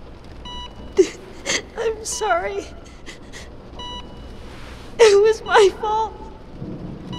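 A young woman speaks softly and emotionally close by.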